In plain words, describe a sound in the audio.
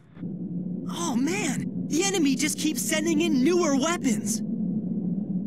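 A young man speaks tensely, heard close.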